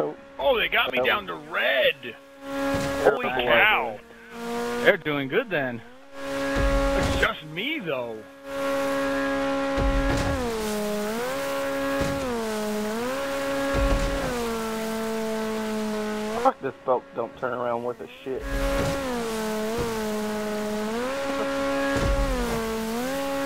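Water sprays and churns against a speeding boat's hull.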